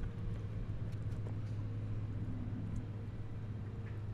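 A dog pants softly nearby.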